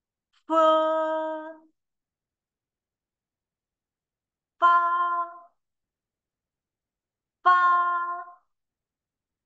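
A young woman pronounces single syllables clearly and slowly into a microphone, with pauses between them.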